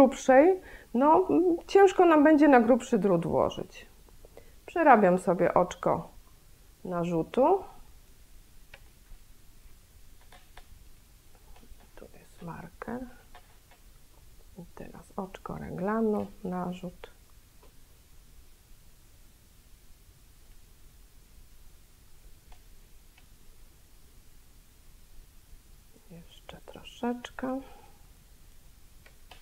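Metal knitting needles click softly against each other.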